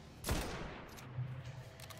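A rifle fires a single loud shot that rings out and fades.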